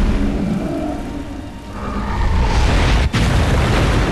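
Water rushes and roars in a swirling whirlpool.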